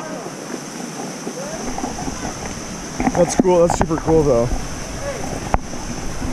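A thin waterfall splashes onto rock.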